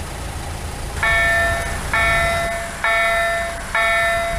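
A level crossing bell rings in a steady repeating pattern.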